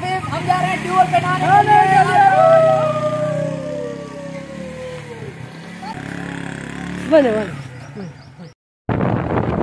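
A motorcycle engine runs and pulls away.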